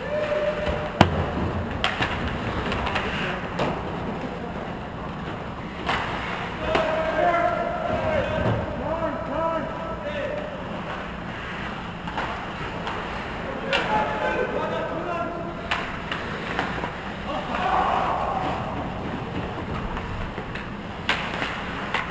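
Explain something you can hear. A hockey stick cracks against a puck.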